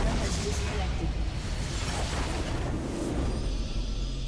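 Game spell effects crash and explode in a fight.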